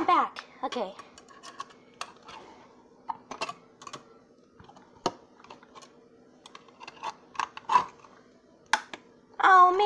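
A knife taps and scrapes against a metal can lid.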